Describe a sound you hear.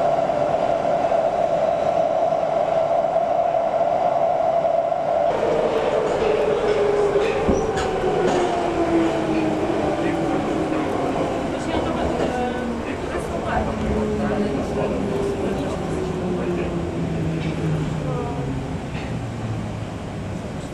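A metro train hums and rumbles loudly along the track.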